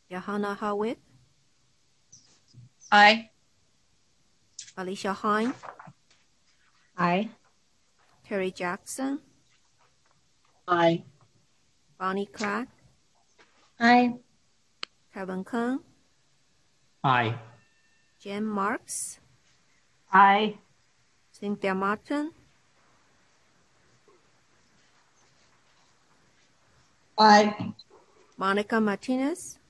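Women and men take turns saying short phrases over an online call, with pauses between them.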